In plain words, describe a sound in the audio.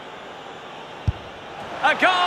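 A football is struck with a sharp thud.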